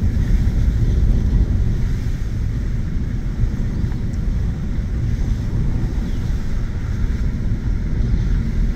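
A vehicle engine rumbles steadily inside a cab while driving.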